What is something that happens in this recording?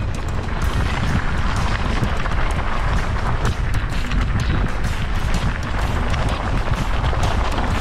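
Bicycle tyres crunch and rattle over loose gravel.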